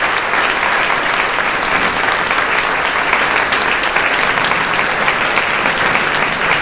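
A crowd applauds steadily in a room.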